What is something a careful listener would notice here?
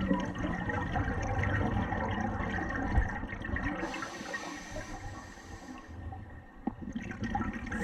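Air bubbles gurgle and rush from a diver's breathing gear underwater.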